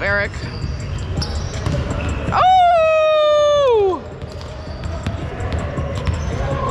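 A volleyball is struck and bounces with sharp thuds in a large echoing gym.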